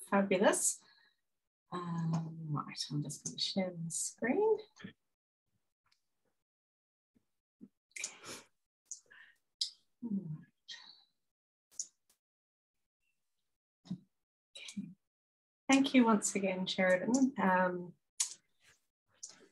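A middle-aged woman speaks calmly, with pauses, over an online call.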